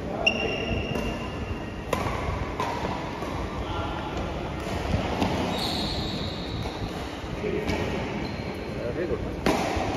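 Rackets sharply hit a shuttlecock back and forth in an echoing hall.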